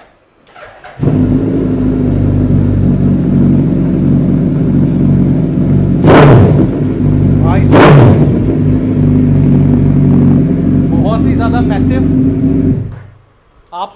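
A motorcycle engine idles loudly indoors.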